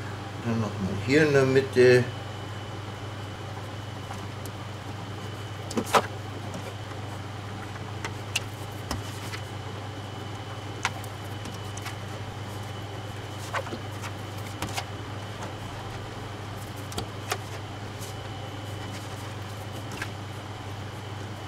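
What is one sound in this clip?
A plastic dough scraper taps and scrapes on a countertop now and then.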